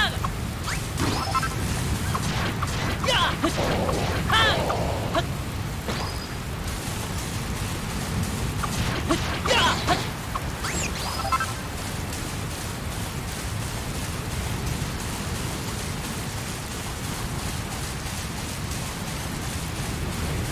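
Rain patters steadily in a video game.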